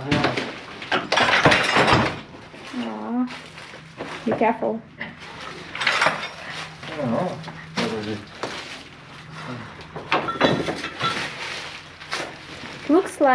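Wood creaks and cracks as a man pulls on a board.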